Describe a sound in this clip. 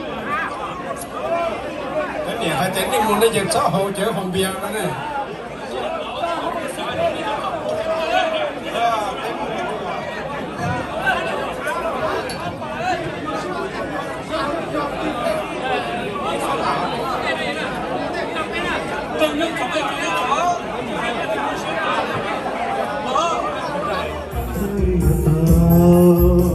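A crowd of men chatters loudly all around in a large room.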